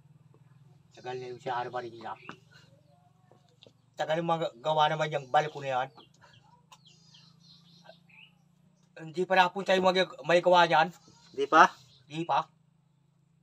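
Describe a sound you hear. An older man speaks calmly and close by, in short bursts.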